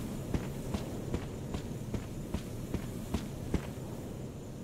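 Footsteps tread slowly on hard ground.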